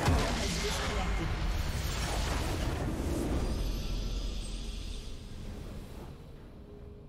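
A massive explosion booms and rumbles, then fades away.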